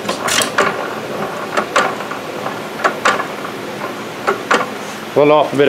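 Metal parts clank and knock now and then.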